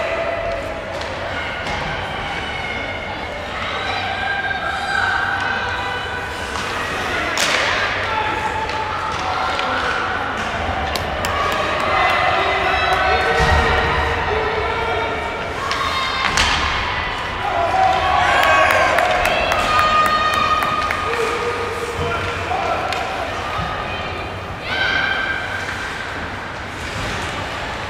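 Spectators shout and cheer in a large echoing arena.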